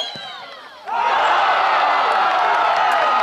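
A crowd cheers loudly outdoors.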